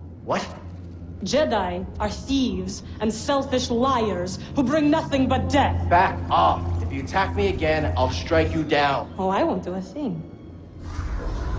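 A young woman speaks menacingly, close by.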